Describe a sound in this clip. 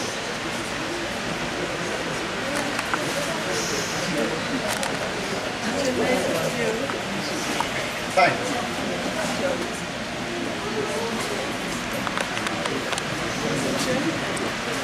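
A crowd of people murmurs softly in the background.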